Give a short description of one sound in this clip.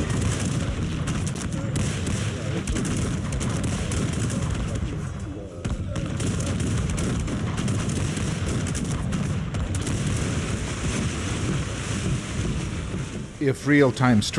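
Muskets crackle and pop in a battle.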